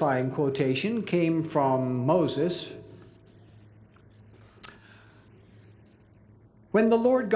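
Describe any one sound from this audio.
An elderly man speaks slowly and deliberately through a microphone in a large hall.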